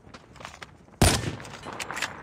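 A rifle fires a single loud, sharp shot.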